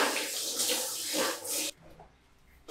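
Water sprays from a shower head.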